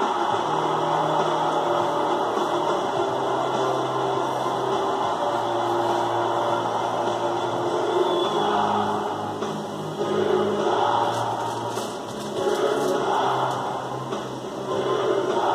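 A man crunches snacks while eating.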